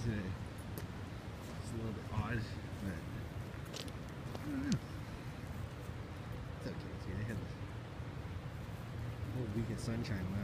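A dog runs through tall grass, rustling it.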